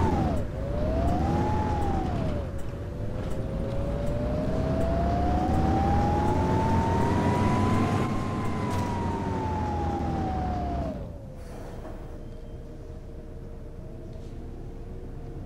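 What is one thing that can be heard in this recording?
A bus engine hums and whines, its pitch rising as it speeds up and falling as it slows to idle.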